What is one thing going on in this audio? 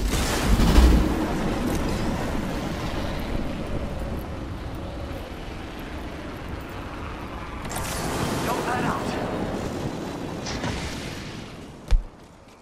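Air rushes past during a long glide through the air.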